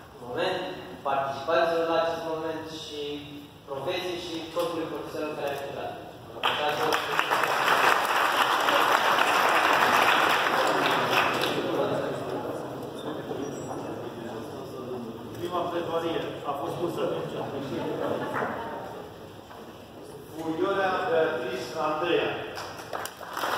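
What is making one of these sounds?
A man speaks close by in a conversational tone.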